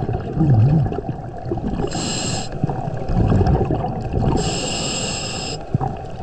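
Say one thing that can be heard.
Water rumbles and swirls in a low, muffled wash underwater.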